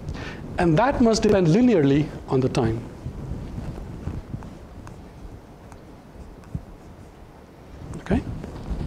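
A man lectures through a microphone in a large room, pausing between phrases.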